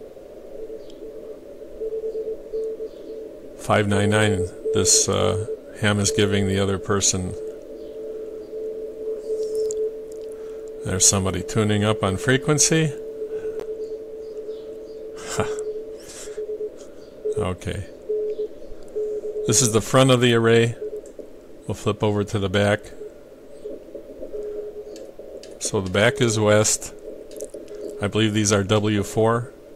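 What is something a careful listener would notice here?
A radio receiver plays a steady tone over soft static.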